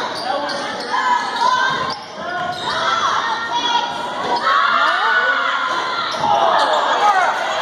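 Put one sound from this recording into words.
A crowd in a large echoing gym cheers and shouts throughout.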